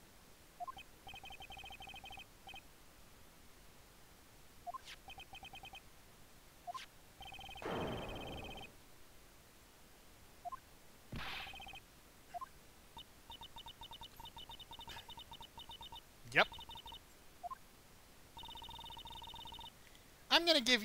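Rapid electronic beeps tick as dialogue text scrolls in a video game.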